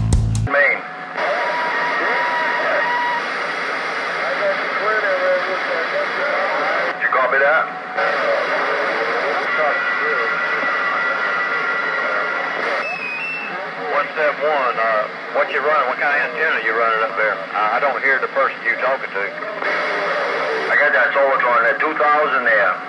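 A radio hisses and warbles with static.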